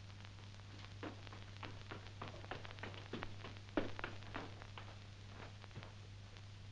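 Footsteps thud on stairs.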